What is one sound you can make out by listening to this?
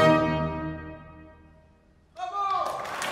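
An orchestra plays a loud chord that rings out and fades in a large hall.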